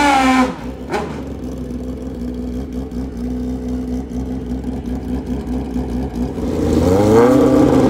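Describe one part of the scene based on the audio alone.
Motorcycle engines idle with a deep, steady rumble.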